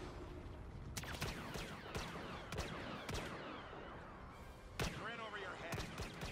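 Laser blasts fire in rapid bursts.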